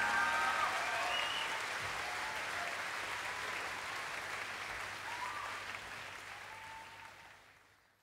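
A large crowd cheers and whistles.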